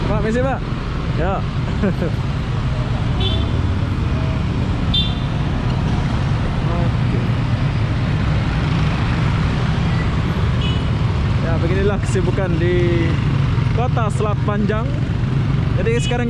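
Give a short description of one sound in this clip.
Motorcycle engines hum and buzz steadily close by.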